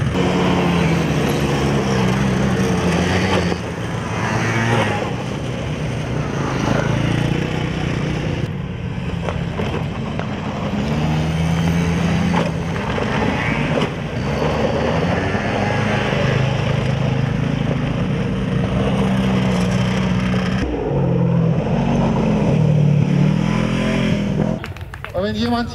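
Quad bike engines rev and whine close by.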